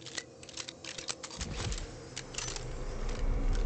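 An energy gun fires in crackling bursts.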